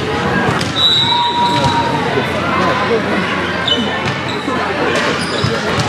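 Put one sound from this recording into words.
Young women call out across a large echoing hall.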